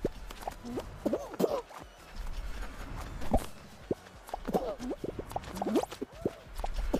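Cartoonish game sound effects squeak, boing and bounce.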